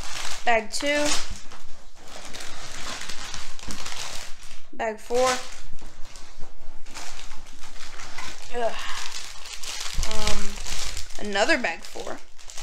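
Small plastic pieces rattle inside a bag.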